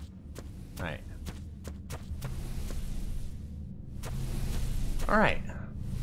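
A creature's feet thud on rocky ground.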